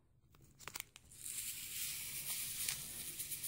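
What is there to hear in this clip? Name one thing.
Water trickles from a squeezed sponge into a bowl.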